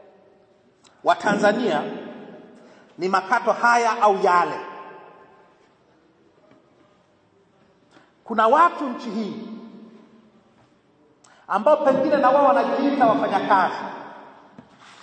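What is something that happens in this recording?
A man speaks loudly into a microphone in short, forceful bursts, heard over a loudspeaker with echo outdoors.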